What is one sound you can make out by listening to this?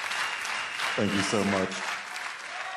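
A young man speaks into a microphone over loudspeakers.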